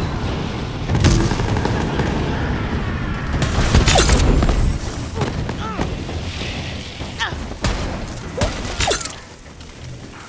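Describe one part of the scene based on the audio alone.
Sniper rifle shots crack sharply.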